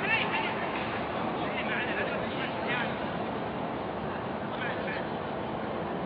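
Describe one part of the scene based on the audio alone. Men shout to each other in the distance across a large, open, echoing stadium.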